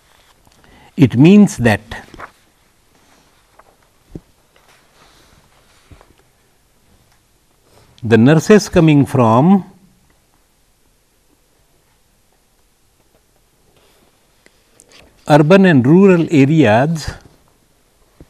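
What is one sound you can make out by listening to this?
An elderly man speaks calmly into a close microphone, in short bursts.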